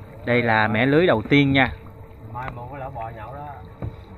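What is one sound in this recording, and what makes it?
Water sloshes gently around a man wading with a net.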